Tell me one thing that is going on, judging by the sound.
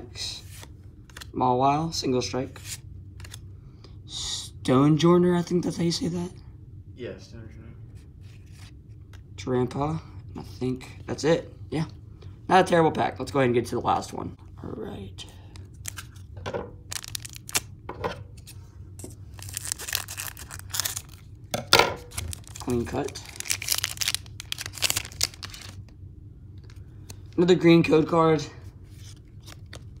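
Playing cards slide and flick against each other in the hands.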